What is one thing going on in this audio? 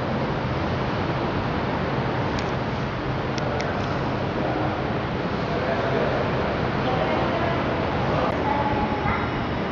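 Water from a fountain splashes steadily into a pool.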